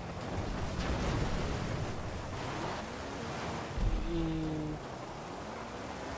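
A car crashes through branches and bushes with cracking thuds.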